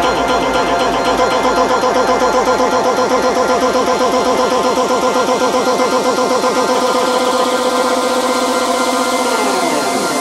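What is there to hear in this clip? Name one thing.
Electronic dance music plays loudly with a fast pulsing beat.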